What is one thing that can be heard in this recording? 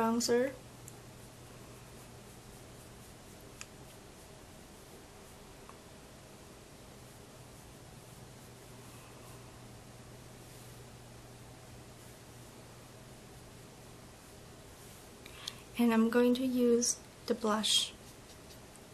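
A young woman speaks briefly and calmly, close by.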